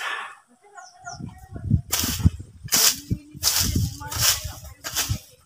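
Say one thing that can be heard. A hoe chops into soil with dull thuds.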